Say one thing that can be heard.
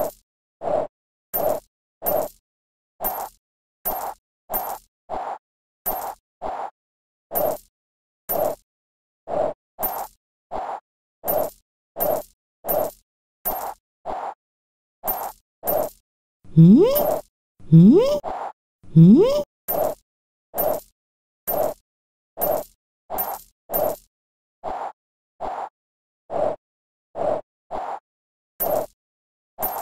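Short springy boings repeat steadily as a cartoon character bounces.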